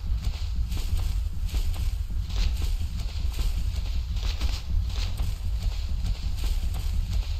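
Footsteps pad softly on sand.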